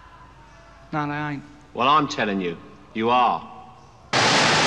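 A young man speaks quietly, close by.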